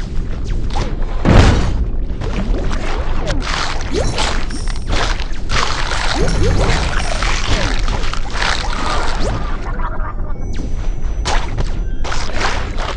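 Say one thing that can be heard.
Crunchy biting sound effects come in quick bursts.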